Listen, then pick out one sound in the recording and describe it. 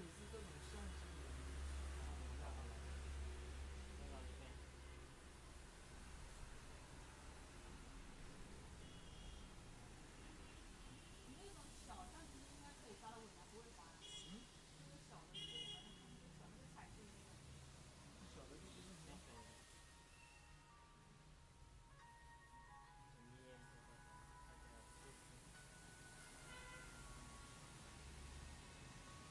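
Long hair rustles softly as hands handle it.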